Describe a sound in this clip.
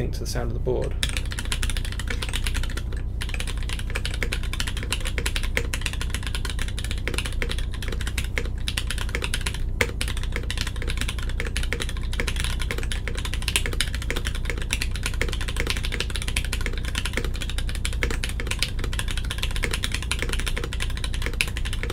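Keys clatter rapidly as someone types on a mechanical keyboard.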